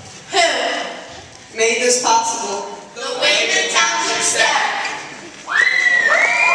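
A teenage girl speaks through a microphone in a large echoing hall.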